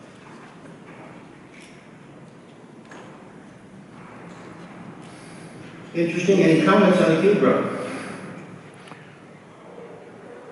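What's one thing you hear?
A man speaks over a microphone and loudspeakers in a large echoing hall.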